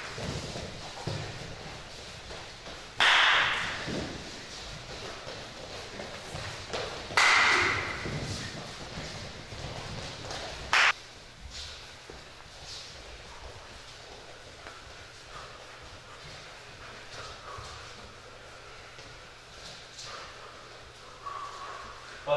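Bare feet shuffle and thud on a hard floor.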